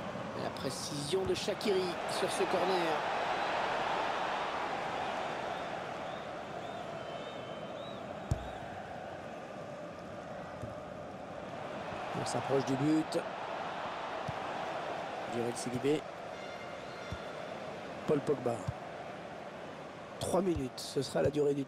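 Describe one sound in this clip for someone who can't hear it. A stadium crowd roars and murmurs throughout.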